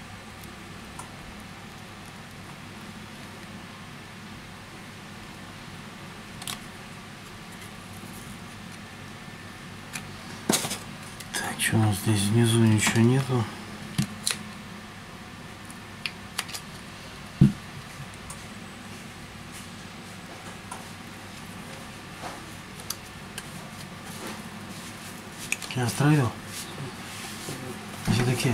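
Small plastic and metal parts click and tap as a phone is pried open and handled.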